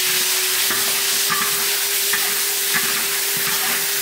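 A metal spatula scrapes and clicks against a wok.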